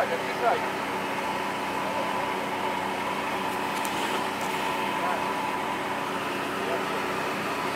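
A car engine idles steadily nearby.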